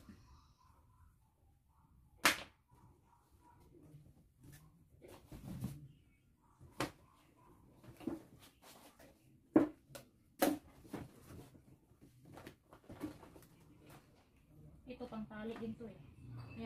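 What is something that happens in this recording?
Plastic packaging crinkles.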